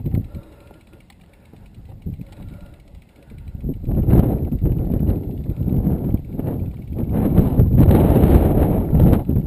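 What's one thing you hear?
A mountain bike's tyres roll and crunch over a dirt trail.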